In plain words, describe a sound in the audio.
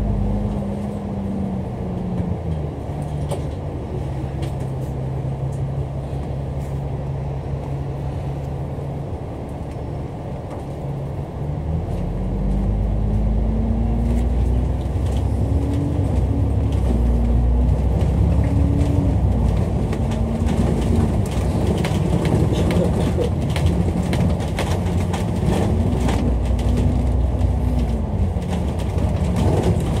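Traffic rumbles along the road outdoors.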